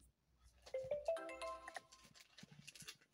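A mobile word game plays a rising chime as a word is completed.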